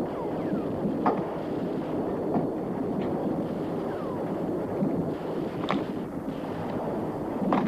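Wooden rungs creak and knock as someone climbs a ladder.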